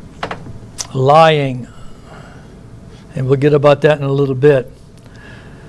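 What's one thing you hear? A middle-aged man speaks emphatically through a microphone.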